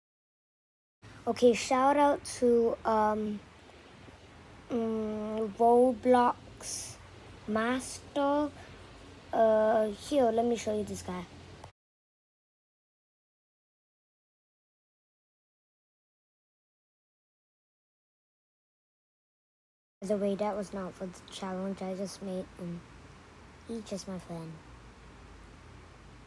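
A young boy talks close to a microphone with animation.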